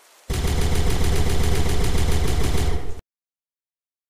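A gun fires in a rapid, steady burst.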